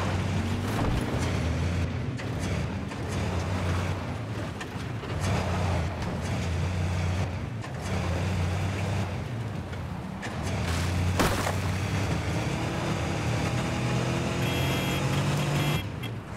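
A buggy engine hums and revs steadily as it drives over rough ground.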